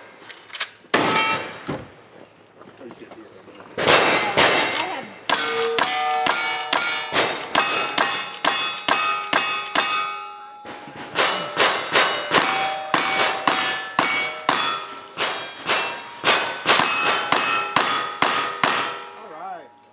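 Bullets strike steel targets with sharp ringing clangs.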